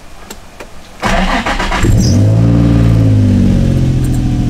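A car engine cranks and roars to life.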